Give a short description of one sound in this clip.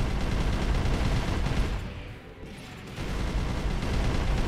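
Explosions boom in quick bursts.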